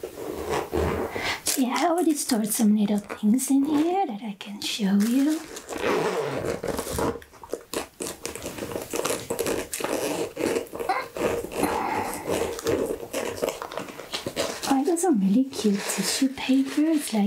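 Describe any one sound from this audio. A soft fabric pouch rustles and crinkles as hands handle it.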